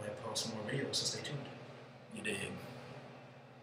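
A young man speaks casually, close to the microphone.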